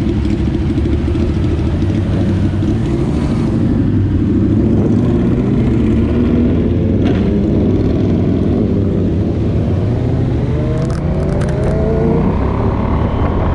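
Other motorcycle engines idle and rev nearby.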